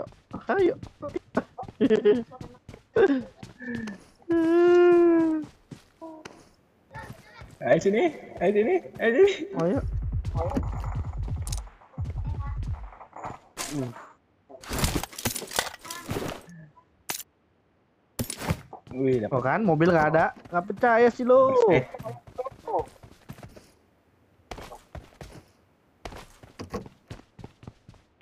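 Footsteps thud quickly on hard floors and ground.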